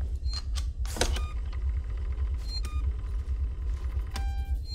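A button clicks as it is pressed on a wall panel.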